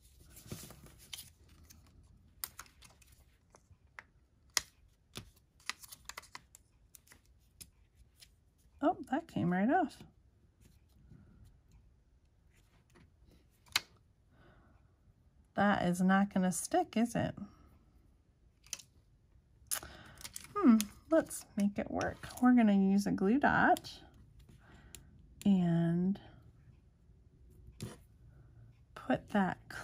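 Paper rustles and taps softly as hands handle a card.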